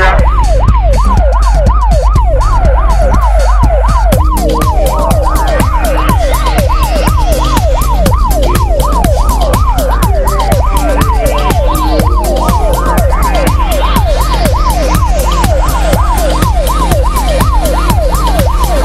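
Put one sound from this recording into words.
A police siren wails rapidly up and down without pause.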